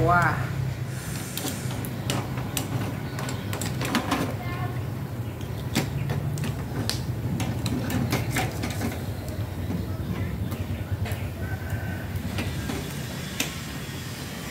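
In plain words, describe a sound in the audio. Metal tongs click against a grill grate.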